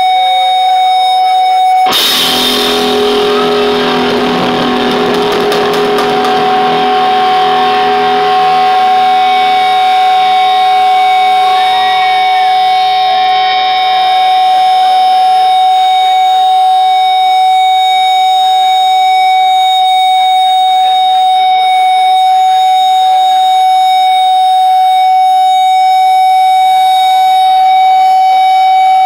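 An amplifier hums with a steady, high feedback whine.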